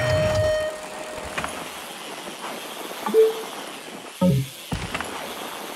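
Short electronic game chimes ring out.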